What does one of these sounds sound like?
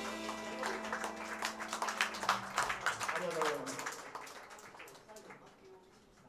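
A live band plays music loudly, then stops.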